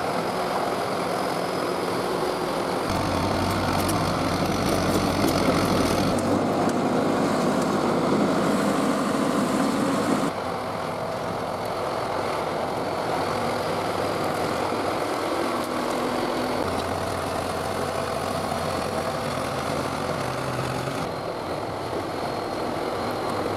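Soil and stones scrape and crunch under a bulldozer blade.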